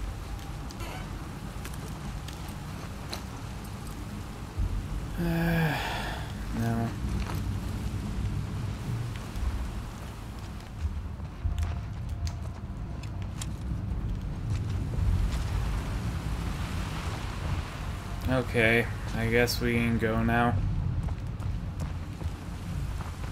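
Footsteps thud slowly across a hard floor.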